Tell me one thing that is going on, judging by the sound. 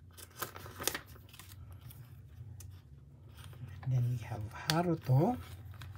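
A plastic binder page flips over with a rustle.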